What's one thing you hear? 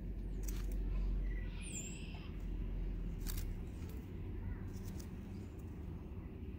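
Small seeds rustle and tick softly in a cupped hand.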